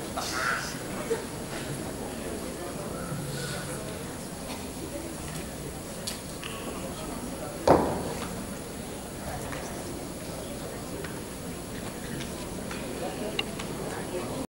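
Acoustic guitars play together in a large echoing hall.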